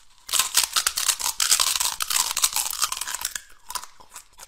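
A young man crunches loudly on food close up.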